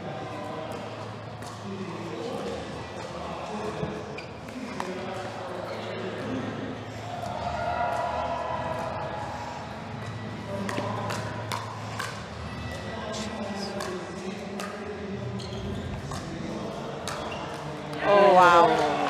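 Paddles strike a plastic ball with sharp pops in a quick rally.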